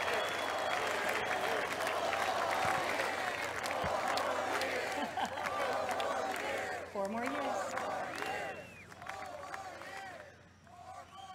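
A large crowd cheers and applauds in a big open space.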